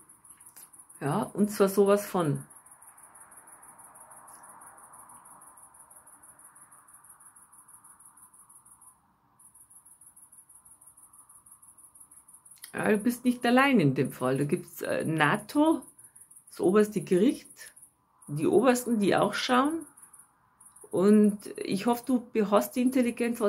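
A young woman speaks close by, in short bursts with pauses.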